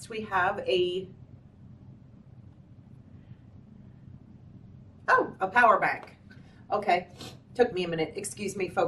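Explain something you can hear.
A middle-aged woman talks calmly and close to the microphone, with pauses.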